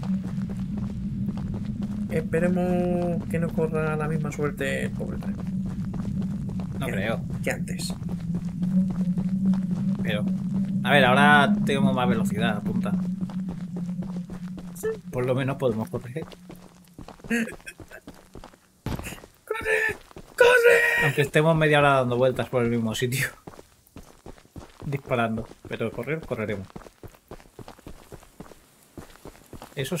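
Footsteps crunch through dry grass and dirt.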